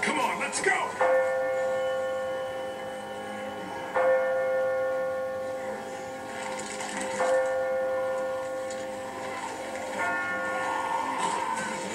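Game music plays from a television, with loud held chords that swell and fade.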